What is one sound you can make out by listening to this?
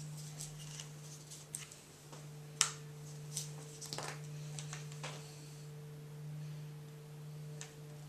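A glue gun clicks and taps against a wooden board.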